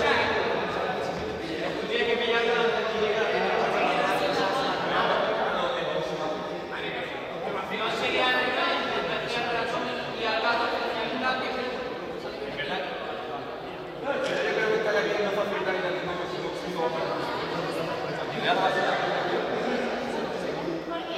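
Young people chatter and call out in a large echoing hall.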